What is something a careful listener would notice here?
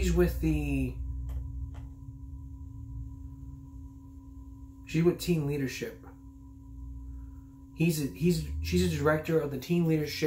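A man talks calmly and close by, in short bursts with pauses.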